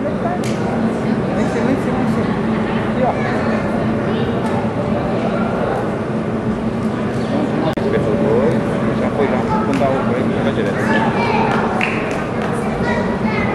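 A crowd of people chatters and murmurs in a large echoing hall.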